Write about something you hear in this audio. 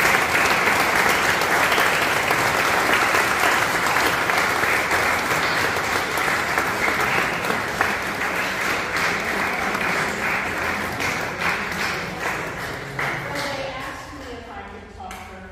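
An audience applauds in a hall, and the clapping slowly fades away.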